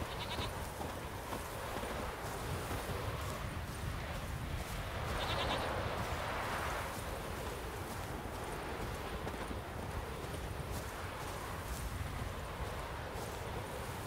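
Leafy bushes rustle as someone pushes through them.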